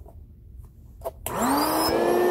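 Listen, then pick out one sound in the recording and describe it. A finger clicks a switch on an air mattress pump.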